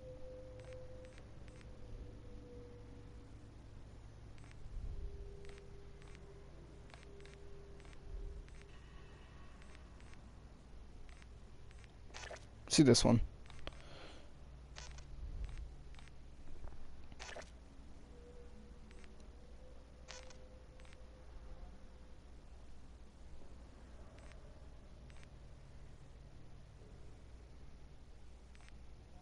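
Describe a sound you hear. Short soft clicks tick as menu selections change.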